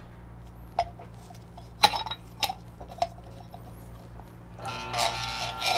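A metal cup clicks into place against a coffee grinder.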